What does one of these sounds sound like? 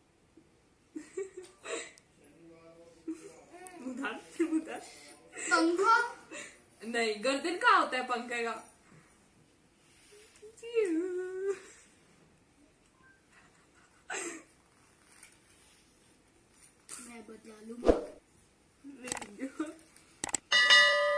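A young girl talks and laughs with animation close by.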